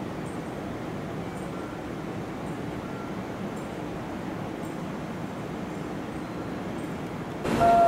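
A train rumbles along steadily on the rails.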